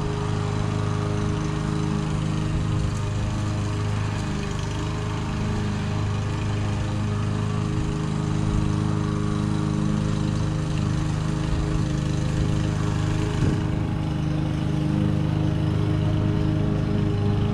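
A lawn mower engine hums steadily in the distance outdoors.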